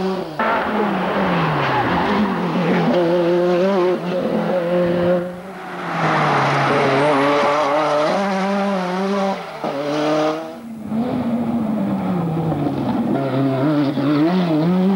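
A rally car engine revs hard and roars as it shifts gears.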